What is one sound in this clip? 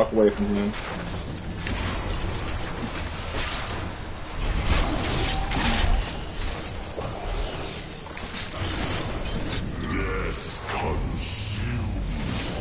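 Magic blasts and battle effects crash and whoosh in a game.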